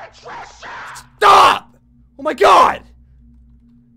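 A young man shouts loudly in surprise.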